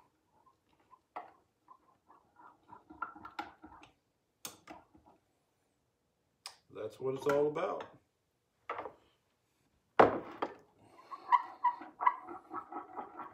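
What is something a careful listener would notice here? A spoon clinks and stirs in a glass.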